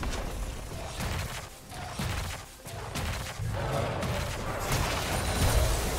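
Magic spell effects zap and crackle in quick bursts.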